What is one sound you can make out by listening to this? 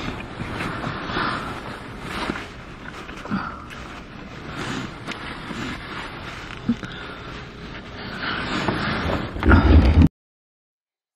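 A young woman sniffles and blows her nose close by.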